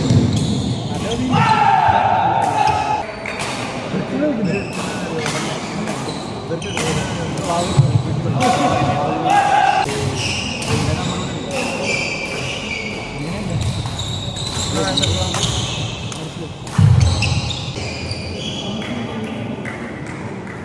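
Sports shoes squeak sharply on a wooden court floor.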